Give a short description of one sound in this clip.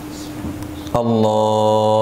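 A man chants a long call loudly through a microphone in an echoing room.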